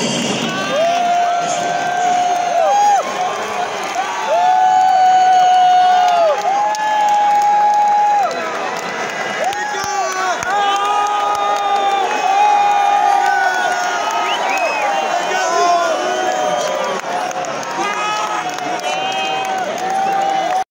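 A rock band plays loudly through a large hall's speakers.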